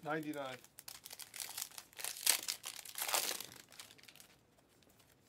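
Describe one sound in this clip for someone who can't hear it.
Foil wrapping crinkles and tears as a pack is opened.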